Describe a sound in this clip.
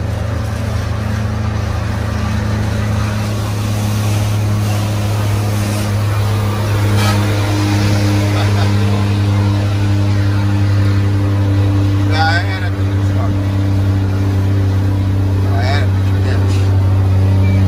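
A truck engine hums low and steady from inside the cab.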